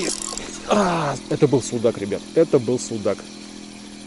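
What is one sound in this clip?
A fishing reel whirs as its handle is turned.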